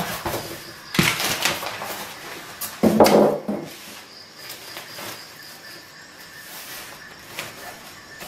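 Plastic wrap crinkles and rustles as it is handled.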